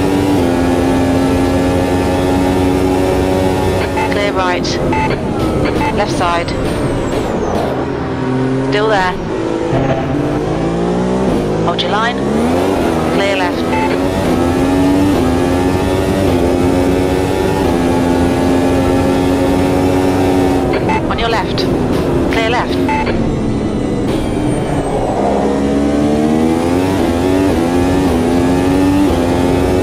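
A racing car engine roars at high revs, with its pitch dropping sharply as it shifts down for corners and climbing again as it speeds up.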